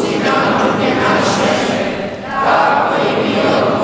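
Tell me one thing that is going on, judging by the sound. A young boy sings along nearby.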